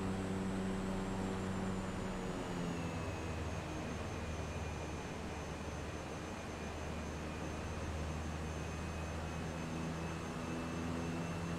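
A small propeller plane's engine drones steadily, its pitch shifting slightly.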